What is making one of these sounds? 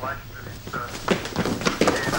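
A young man speaks briefly.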